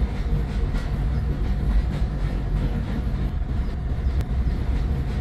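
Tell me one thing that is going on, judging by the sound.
Train wheels rumble and clatter steadily along a track.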